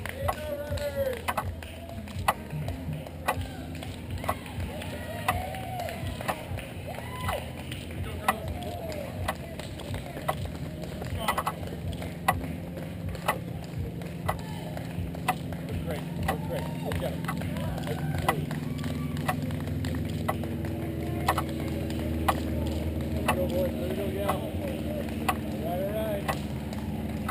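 A woman claps her hands steadily, close by.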